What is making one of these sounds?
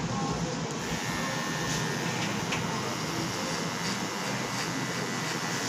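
Electric hair clippers buzz close by.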